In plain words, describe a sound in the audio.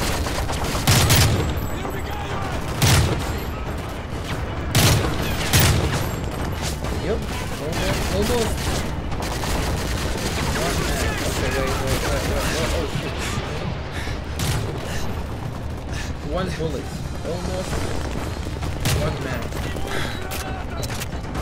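Loud gunshots bang in short bursts.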